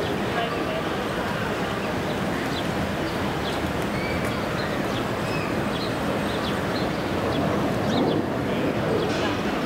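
A hawk chick peeps softly.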